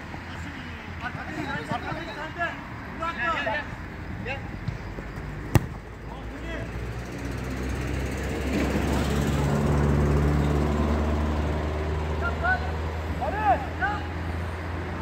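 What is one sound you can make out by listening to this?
Men shout to each other from across an outdoor pitch.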